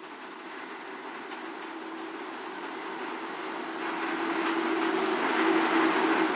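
A subway train approaches with a rising rumble and squeal of wheels.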